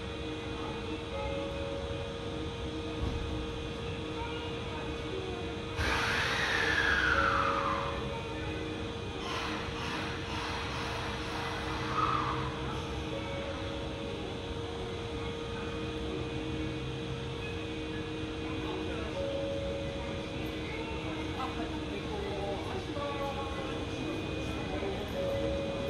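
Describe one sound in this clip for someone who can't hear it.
An electric train hums steadily while standing at an echoing platform.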